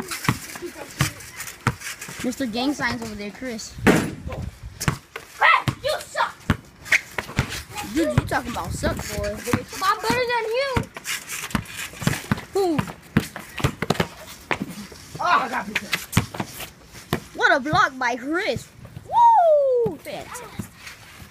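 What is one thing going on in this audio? A basketball bounces repeatedly on hard pavement.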